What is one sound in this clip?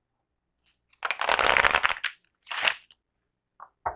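Playing cards shuffle and riffle in hands.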